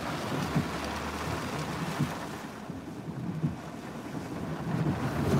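Heavy rain pelts a car's windshield.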